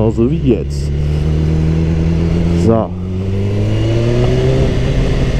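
A motorcycle engine roars steadily up close and briefly revs between gears.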